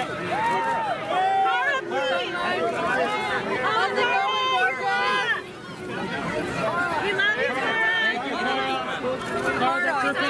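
A crowd of men and women call out excitedly and talk over one another close by.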